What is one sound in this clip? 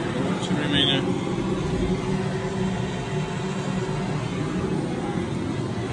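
Machinery hums loudly and steadily close by.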